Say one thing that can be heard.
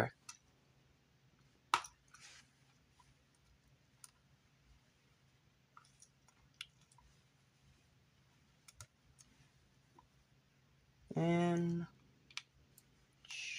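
Plastic toy bricks click and clack as hands fit them together.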